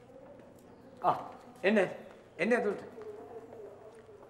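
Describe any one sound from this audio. Men talk quietly nearby.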